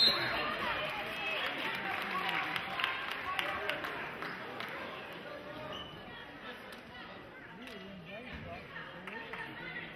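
Basketball shoes squeak sharply on a wooden court.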